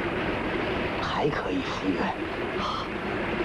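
A young man speaks pleadingly, close by.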